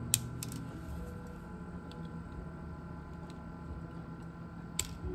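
Small metal tools click and tap against thin wires.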